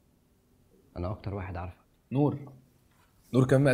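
A young man asks a question.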